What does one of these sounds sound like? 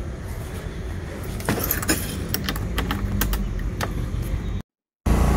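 Keys jingle and clink on a key ring.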